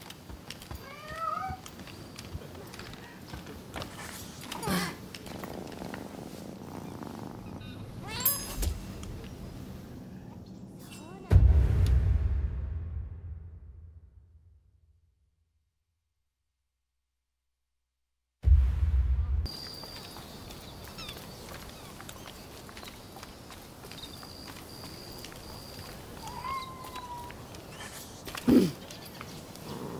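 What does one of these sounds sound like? A cat meows softly.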